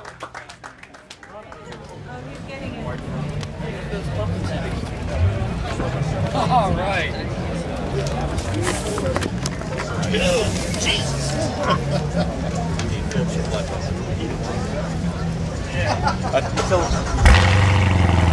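Men talk among themselves in a crowd outdoors.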